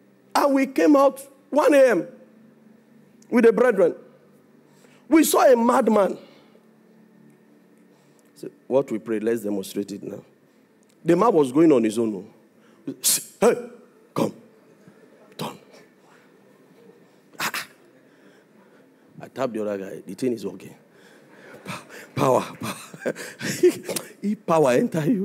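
A man speaks with animation into a microphone through loudspeakers, in bursts with pauses, in a large echoing hall.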